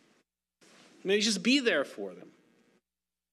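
A middle-aged man speaks briefly through a microphone.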